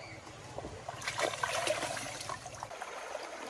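Water splashes as a hand scoops it.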